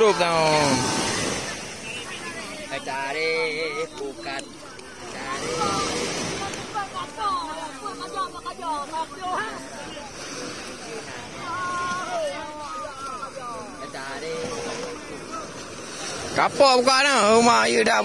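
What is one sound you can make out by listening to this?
Several men talk loudly with one another close by, outdoors.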